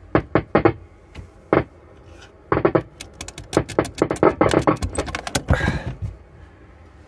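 Cables rattle and knock against a hard case.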